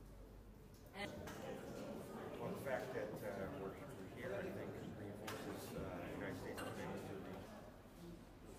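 A middle-aged man speaks calmly into handheld microphones.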